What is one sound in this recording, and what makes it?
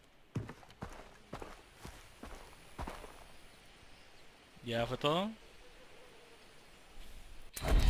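Footsteps crunch on dirt at a steady walking pace.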